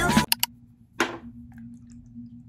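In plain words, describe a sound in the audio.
Liquid squirts from a bottle into a hand.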